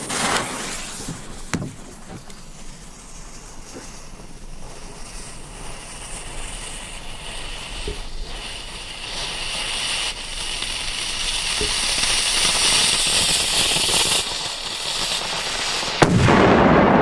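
A lit fuse hisses and sputters.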